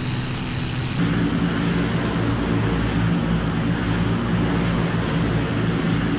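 Several heavy bombers' engines rumble loudly outside.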